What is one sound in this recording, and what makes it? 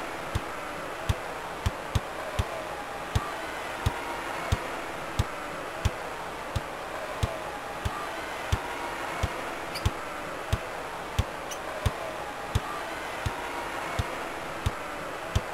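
A basketball bounces in a steady rhythm on a hard court.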